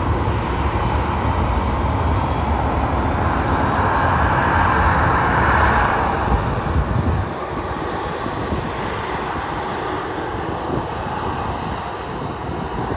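Jet engines whine steadily as an airliner taxies nearby.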